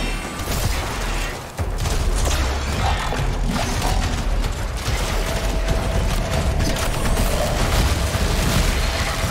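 Gunfire and explosions crackle and boom without a break.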